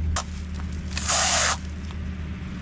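Plastic wrap film rustles and tears as it is pulled out.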